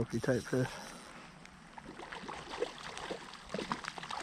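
A fish splashes briefly at the surface of calm water.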